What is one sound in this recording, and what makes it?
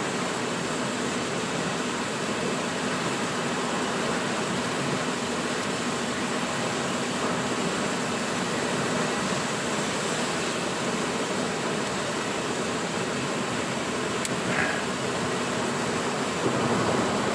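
Rain patters steadily on a car's windscreen.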